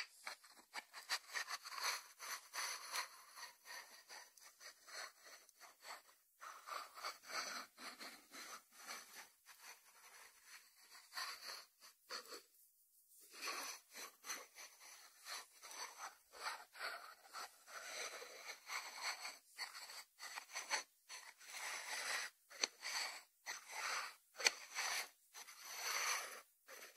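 A ceramic dish scrapes and slides on a wooden board.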